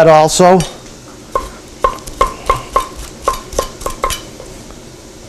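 A knife chops quickly on a wooden board.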